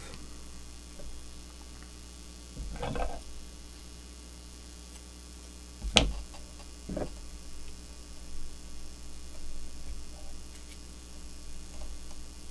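Thread from a bobbin is wound around a jig hook.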